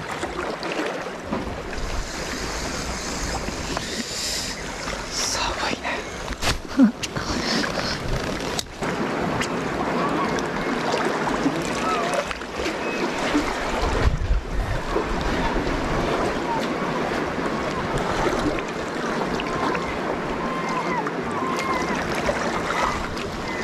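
Gentle waves lap against rocks.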